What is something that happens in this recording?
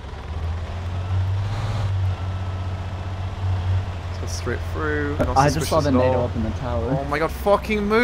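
An armoured truck's engine rumbles steadily.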